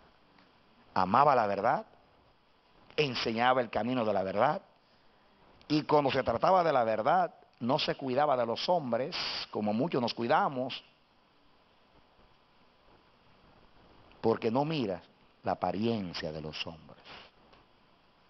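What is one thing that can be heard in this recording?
A man speaks with feeling into a microphone, in bursts with pauses.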